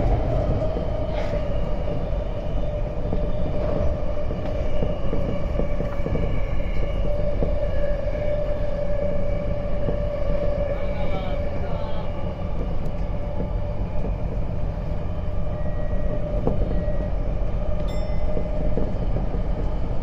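Train wheels squeal and hum on the curving track.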